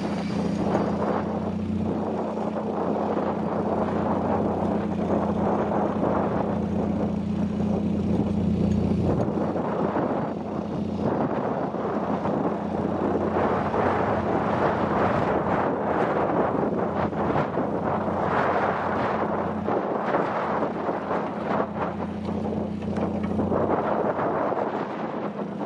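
Tyres spin and scrabble in soft earth.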